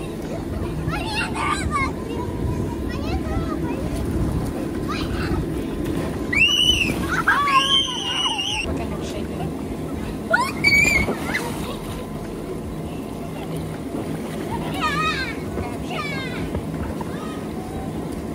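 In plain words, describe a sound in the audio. Young children shout and squeal while playing.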